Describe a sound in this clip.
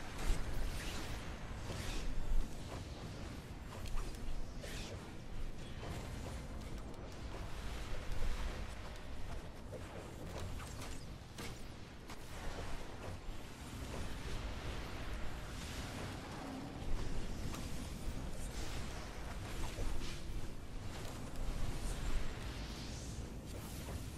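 Magic blasts whoosh and crackle in a game battle.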